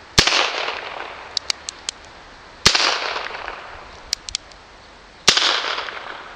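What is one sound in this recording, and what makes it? A revolver fires loud shots that echo outdoors.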